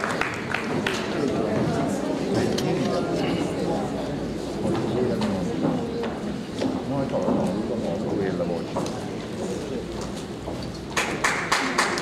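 Men and women of a choir murmur and chat quietly.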